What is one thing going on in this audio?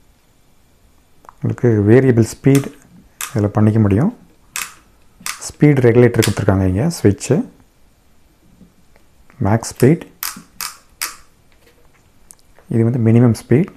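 A small plastic switch clicks.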